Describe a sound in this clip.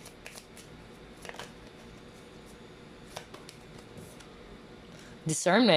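Playing cards shuffle and flick softly.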